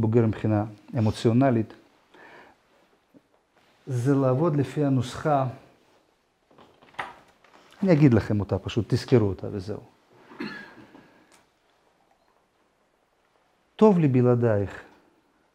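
A middle-aged man speaks calmly and clearly into a close microphone, in short phrases with pauses.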